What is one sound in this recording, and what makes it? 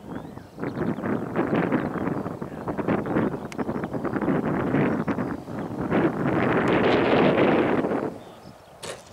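Wind buffets loudly outdoors, then dies down.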